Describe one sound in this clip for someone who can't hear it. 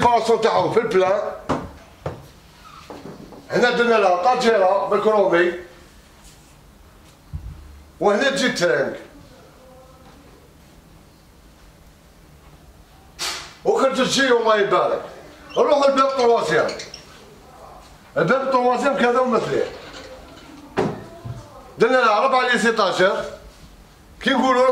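A middle-aged man speaks with animation close to a microphone, in short bursts with pauses.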